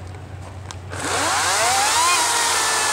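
A chainsaw whines as it cuts into wood.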